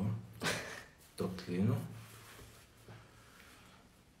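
Cloth rustles as a napkin is handled.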